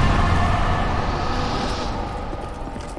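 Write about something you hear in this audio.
A magic spell crackles and roars.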